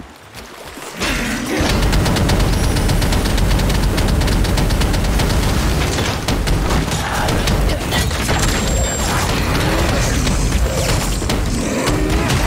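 Crackling electric bursts of a spell fizz loudly.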